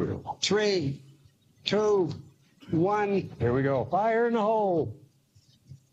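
An elderly man shouts loudly.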